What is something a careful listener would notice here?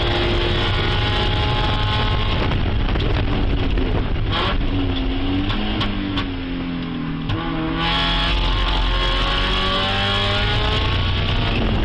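A race car engine roars loudly from inside the cabin, revving up and down through the gears.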